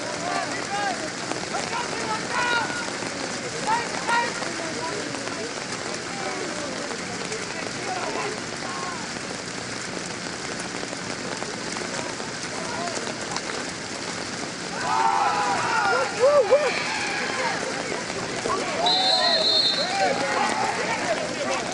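A crowd murmurs and chatters in an open-air stadium.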